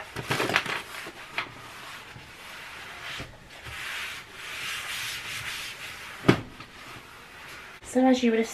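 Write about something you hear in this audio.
A cloth wipes across a countertop.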